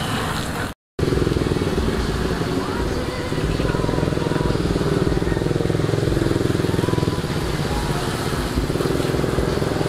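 A second small motorcycle engine revs at a distance.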